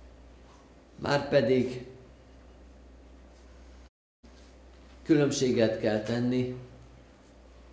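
An elderly man speaks slowly and calmly into a microphone in an echoing hall.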